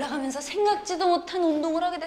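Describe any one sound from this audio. A fist knocks on a door.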